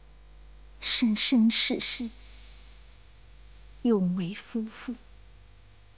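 A man shouts loudly in short bursts nearby.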